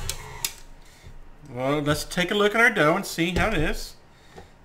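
A stand mixer's head clicks as it is tilted up.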